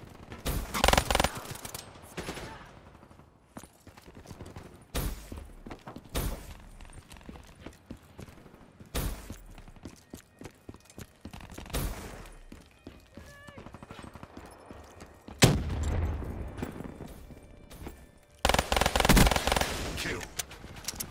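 Guns fire in loud, sharp bursts.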